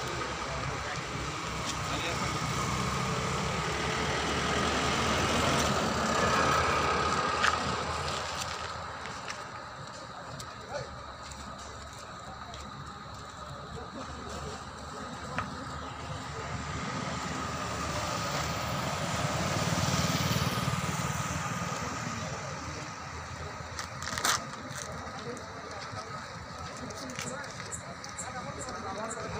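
Men talk quietly outdoors.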